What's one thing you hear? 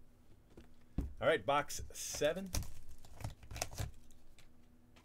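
Plastic wrapping crinkles as it is handled.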